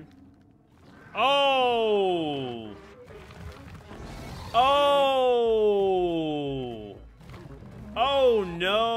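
A giant creature bellows with long, falling roars.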